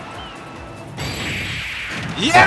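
A video game hit lands with a loud crashing blast.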